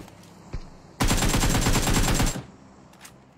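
Rapid gunfire rattles in a short burst.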